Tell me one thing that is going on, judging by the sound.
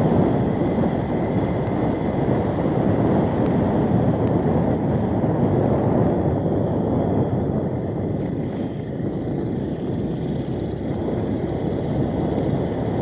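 A motorbike engine hums steadily while riding along a road.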